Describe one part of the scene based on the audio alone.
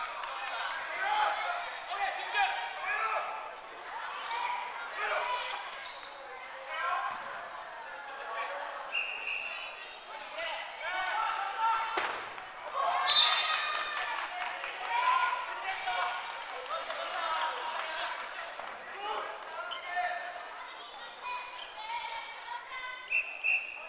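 Girls shout and cheer in a large echoing hall.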